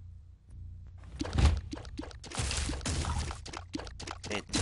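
Video game shots pop and splat in quick bursts.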